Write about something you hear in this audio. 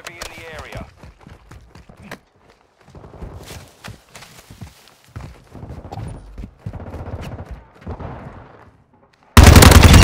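Footsteps crunch over snow and pavement.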